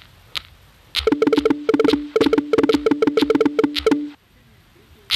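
Rapid electronic ticks sound as a game score counts up.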